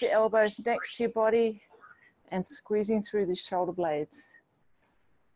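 A woman speaks clearly as if instructing, heard through an online call.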